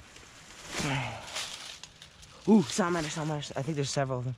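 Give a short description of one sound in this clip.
A rotten piece of wood scrapes and knocks as it is lifted.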